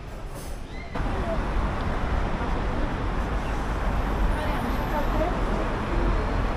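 Cars drive past on a city street outdoors.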